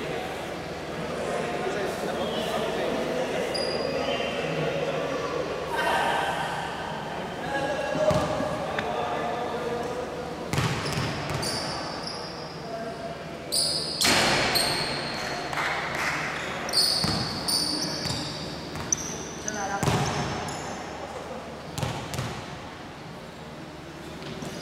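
Basketball shoes squeak sharply on a wooden court in an echoing hall.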